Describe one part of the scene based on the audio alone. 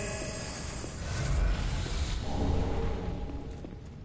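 A chime rings as an item is picked up.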